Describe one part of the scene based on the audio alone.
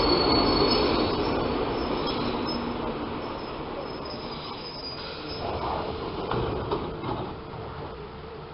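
An electric multiple-unit train rolls past close by and slows to a stop.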